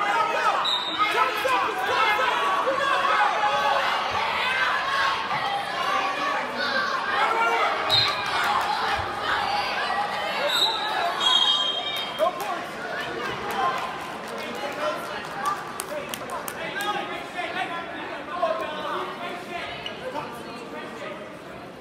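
A crowd of spectators cheers and shouts throughout a large echoing gym.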